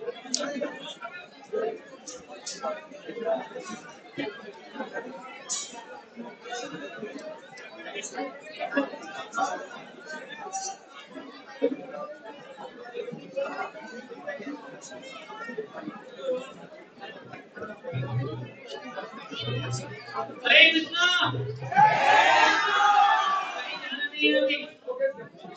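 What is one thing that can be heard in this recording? A large crowd of men and women chatters loudly in a big echoing hall.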